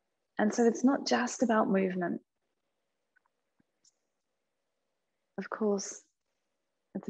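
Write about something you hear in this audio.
A young woman speaks calmly and close by, in short phrases.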